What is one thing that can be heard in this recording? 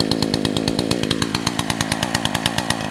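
A chainsaw engine revs up and drops back.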